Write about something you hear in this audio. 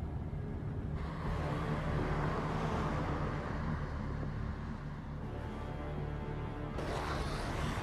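A car engine roars as the car speeds across concrete.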